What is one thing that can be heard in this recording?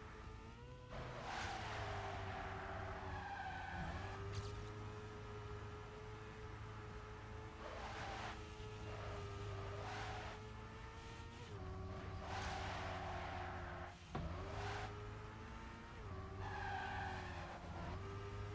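Tyres screech on the track in short bursts.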